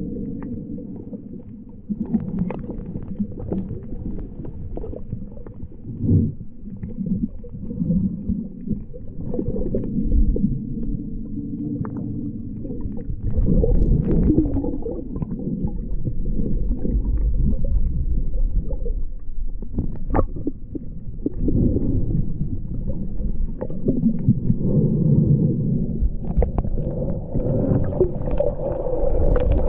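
Water swirls and rumbles underwater, heard close and muffled.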